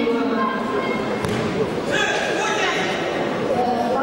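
A judoka is thrown and thuds onto a judo mat.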